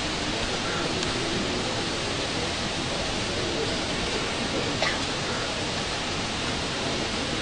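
A marching band plays brass and drums outdoors.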